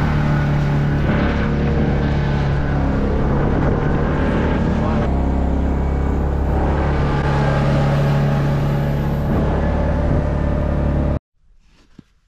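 A vehicle engine drones steadily while driving over snow.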